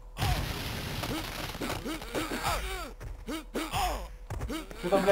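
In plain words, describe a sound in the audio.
Punches and kicks land with heavy thuds.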